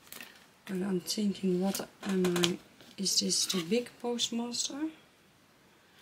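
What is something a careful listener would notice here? A sheet of card rustles as it is handled.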